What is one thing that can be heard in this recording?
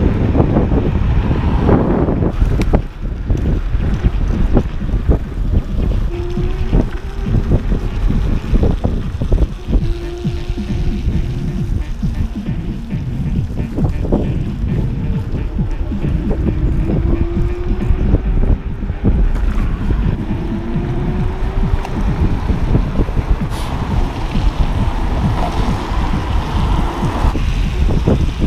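Small wheels rattle and hum over wet pavement.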